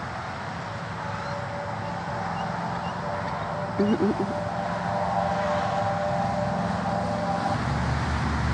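A bald eagle calls loudly with high, chattering cries.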